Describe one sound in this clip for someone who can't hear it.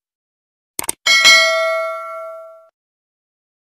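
A small bell chimes brightly and slowly fades.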